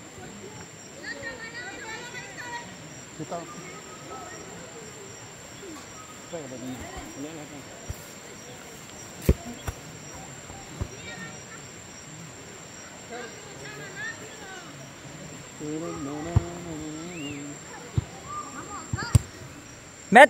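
Women and girls shout and call out across an open field.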